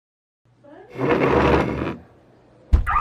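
Skateboard wheels roll across a wooden floor.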